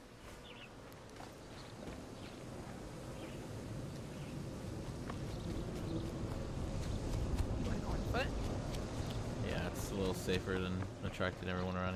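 Footsteps run over grass and gravel.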